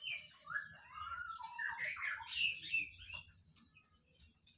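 A small bird chirps and twitters.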